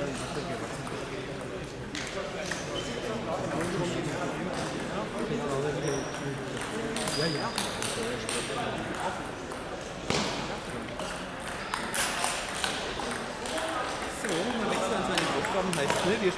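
Voices of men murmur in a large echoing hall.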